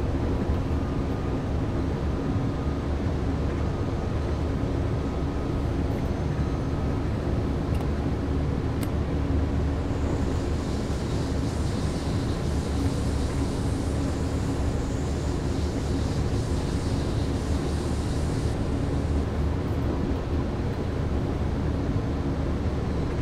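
A train's electric motors hum steadily as it rolls along the track.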